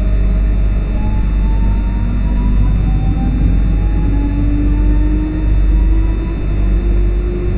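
An electric train motor whines, rising in pitch as it speeds up.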